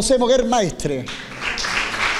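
A man speaks into a microphone in an echoing room.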